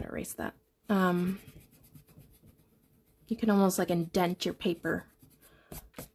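A hand rubs softly across paper.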